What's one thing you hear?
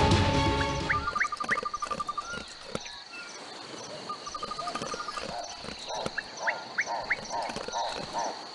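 A creature chomps and crunches its food in quick bites.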